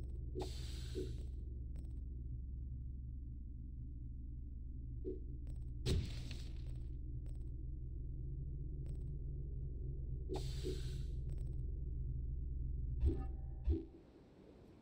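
Low, droning music hums steadily.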